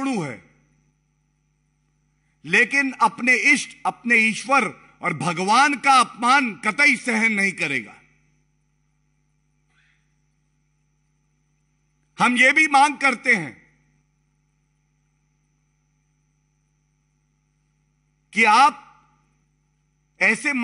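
A middle-aged man speaks forcefully into a microphone, with pauses between phrases.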